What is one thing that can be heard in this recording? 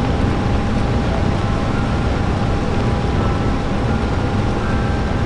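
Wind rushes loudly and steadily.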